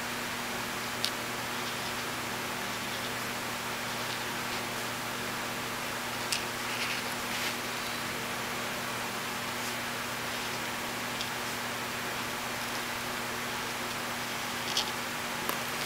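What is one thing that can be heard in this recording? A marker taps lightly against paper.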